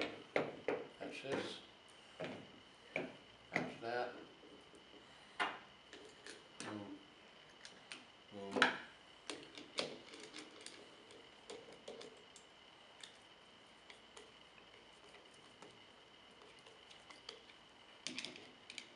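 Metal parts clink and knock together as they are handled and fitted.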